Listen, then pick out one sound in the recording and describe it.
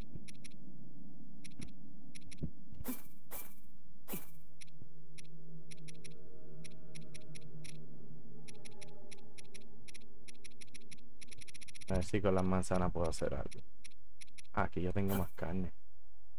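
Soft menu clicks tick quickly as a selection moves.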